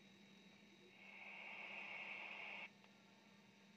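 A mobile radio transceiver hisses with static through its loudspeaker.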